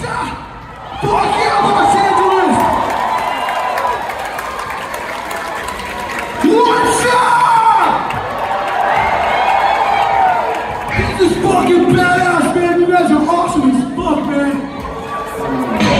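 A man shouts and sings into a microphone over loudspeakers.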